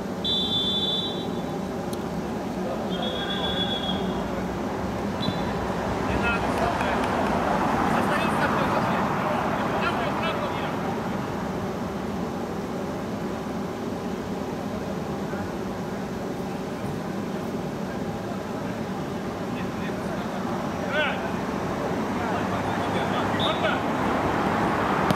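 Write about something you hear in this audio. Players shout to each other across an outdoor pitch.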